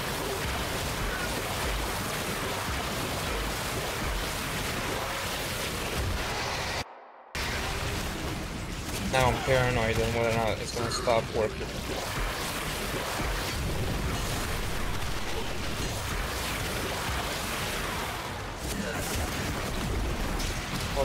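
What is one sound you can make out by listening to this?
Loud energy blasts and impacts crackle and whoosh.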